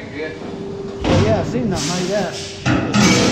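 Metal parts clank and knock.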